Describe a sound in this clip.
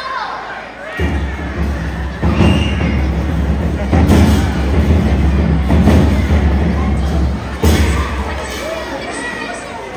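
Dancers stamp their feet heavily on a wooden stage.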